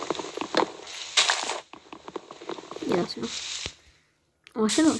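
Wooden blocks are struck and crack apart in quick, repeated taps.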